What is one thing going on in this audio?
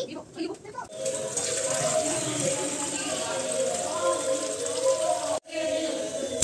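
Water runs from a tap into a metal pan.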